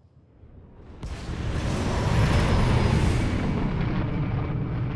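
A spaceship engine rumbles as the ship flies off into space.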